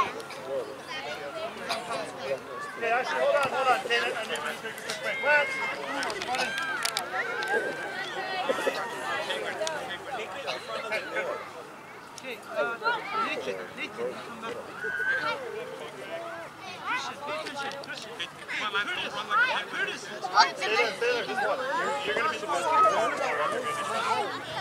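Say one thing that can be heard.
Young children shout and chatter outdoors.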